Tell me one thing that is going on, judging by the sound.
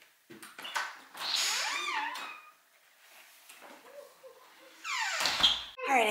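A door opens and shuts.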